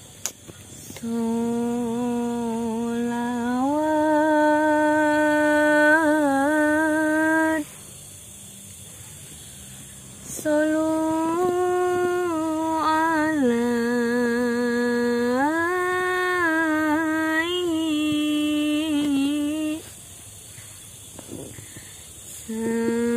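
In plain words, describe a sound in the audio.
A young woman sings slowly in long, held notes close by.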